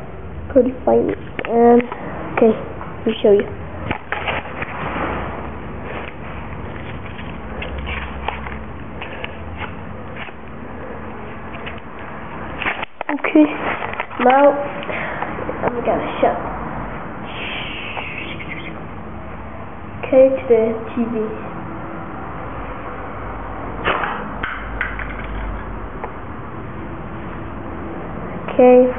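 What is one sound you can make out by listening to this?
Stiff paper rustles and creaks as it is handled.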